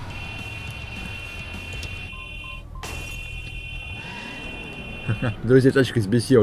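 A car alarm sounds with a steady high tone.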